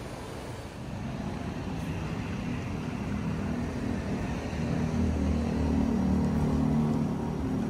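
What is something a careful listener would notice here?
An escalator hums and rumbles as it runs.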